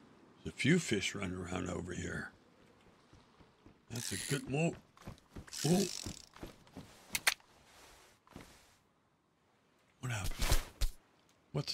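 A young man talks and laughs with animation over a microphone.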